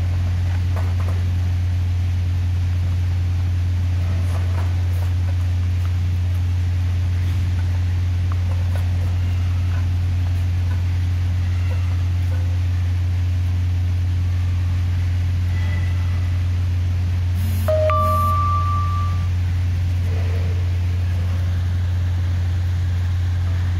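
A cat laps water from a metal bowl.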